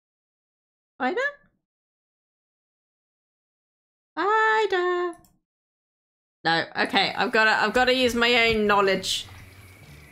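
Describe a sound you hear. A young woman speaks with animation into a microphone, in short bursts.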